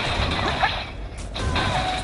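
Fighting sound effects clash and whoosh in a video game.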